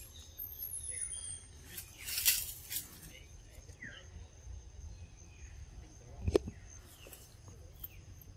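A monkey's claws scrape on tree bark as it climbs.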